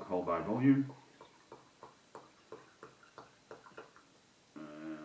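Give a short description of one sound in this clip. Liquid glugs as it is poured from a bottle.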